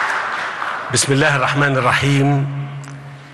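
A man speaks calmly into a microphone, heard through loudspeakers in a hall.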